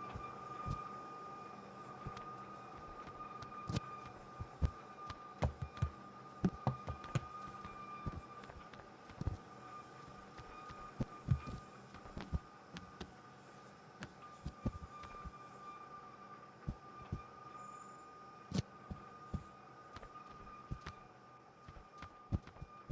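A wooden crate thuds and knocks against concrete.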